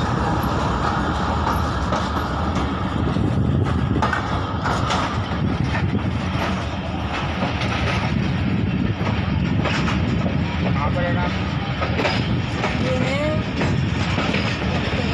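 Wind rushes past the open train door.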